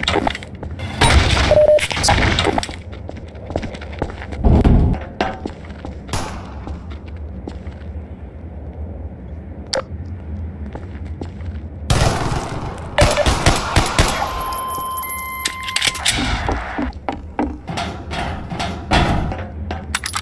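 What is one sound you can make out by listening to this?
A pistol fires sharp, loud gunshots.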